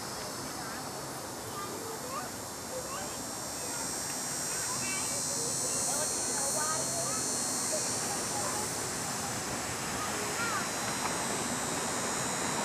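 An elderly man talks calmly to a young child.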